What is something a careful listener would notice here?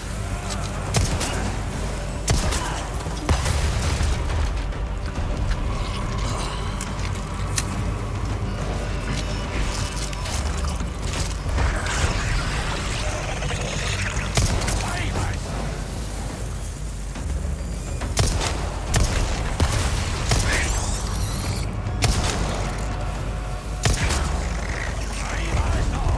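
Pistol shots ring out one at a time, sharp and echoing.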